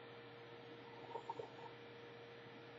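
A man slurps a drink.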